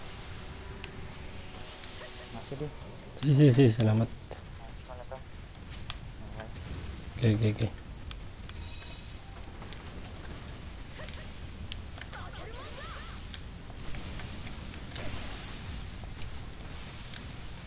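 Gas jets hiss as a figure swings through the air on cables.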